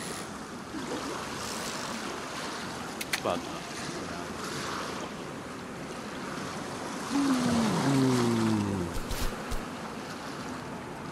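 Waves wash steadily over open water.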